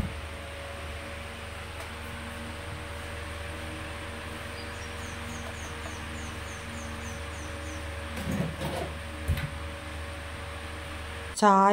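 A bedsheet rustles as it is smoothed out.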